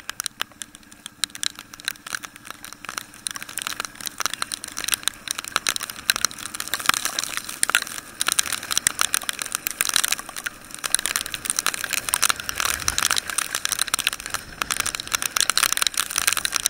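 Rain patters and splashes on the road and the rider.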